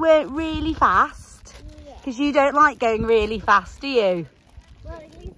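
A young girl speaks excitedly close by.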